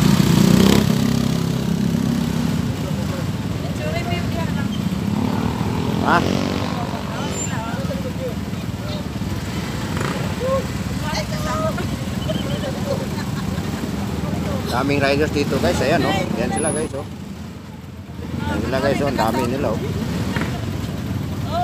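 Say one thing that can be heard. Motorcycle engines idle with a low, steady rumble outdoors.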